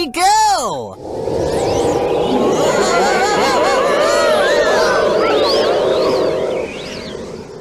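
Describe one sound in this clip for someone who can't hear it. Several robotic machines sound together in a dense, wavering electronic chord.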